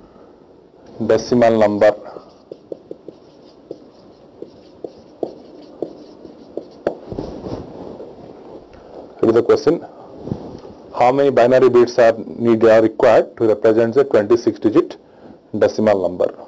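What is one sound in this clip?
A man speaks calmly into a microphone, explaining.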